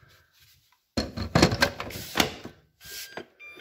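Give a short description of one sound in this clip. A battery slides into a charger and clicks into place.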